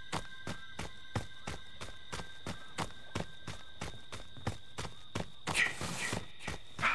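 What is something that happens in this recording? Quick footsteps run over dirt and leaves.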